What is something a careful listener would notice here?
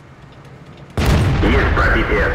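A tank cannon fires with a loud, sudden boom.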